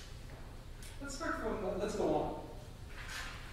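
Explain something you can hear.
A woman's voice sounds briefly in a large echoing hall.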